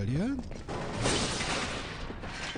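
Crates smash apart with a sharp crash.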